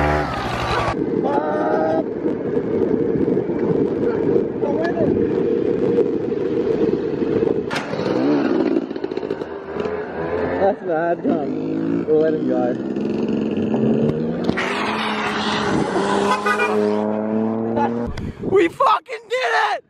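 A dirt bike engine buzzes and revs nearby.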